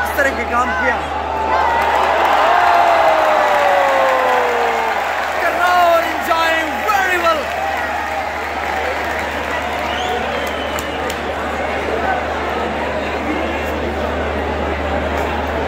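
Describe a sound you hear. A large crowd cheers and roars throughout, in a big open stadium.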